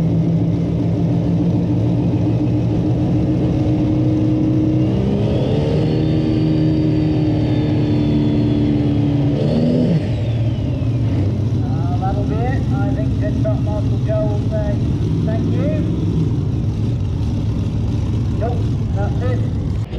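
A powerful tractor engine roars in the distance, revving up and then dropping away.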